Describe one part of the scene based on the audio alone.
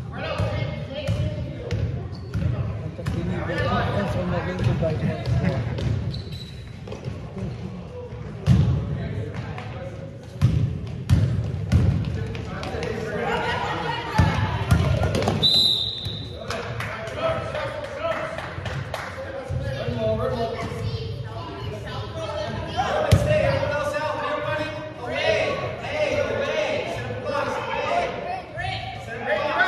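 Children shout and call out across the hall.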